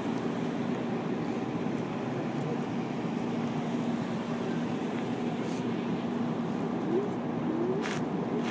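A full-size SUV rolls past slowly with a low engine hum.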